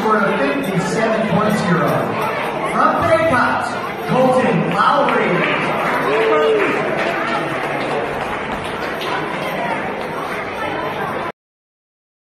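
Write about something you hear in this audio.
A crowd of children chatter all around in a large echoing hall.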